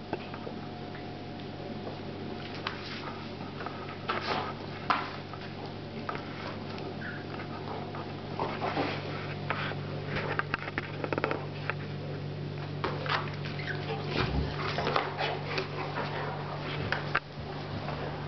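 Dogs scuffle and paw at each other up close.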